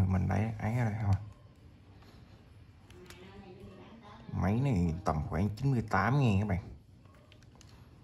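Small plastic buttons click under fingers.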